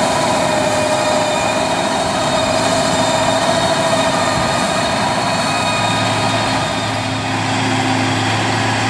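A tractor engine rumbles steadily nearby.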